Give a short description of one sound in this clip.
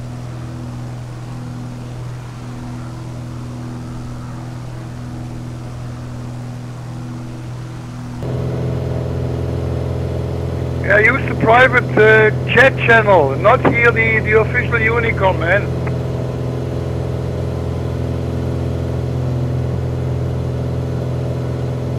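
A small propeller plane's engine drones steadily and grows louder from inside the cabin.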